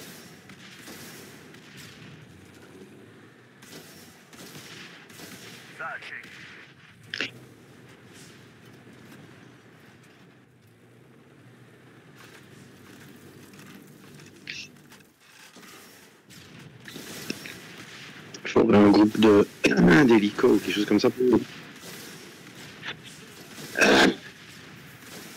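Explosions and gunfire from a battle game crackle and boom.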